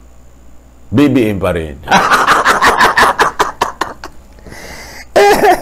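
A middle-aged man laughs loudly.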